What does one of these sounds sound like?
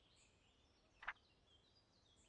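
A book page flips with a soft rustle.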